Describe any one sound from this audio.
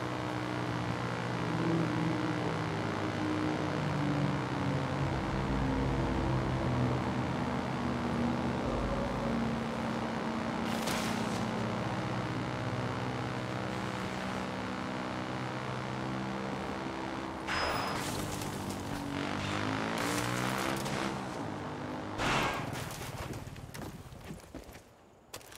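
Tyres crunch over rough dirt.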